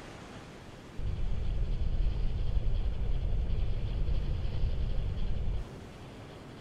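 A low rumble of water sounds under the surface.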